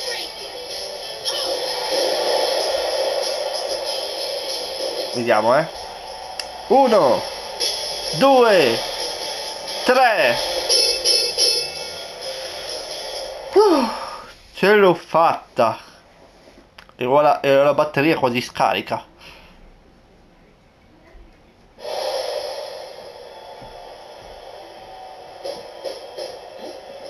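A crowd cheers and roars steadily through a television speaker.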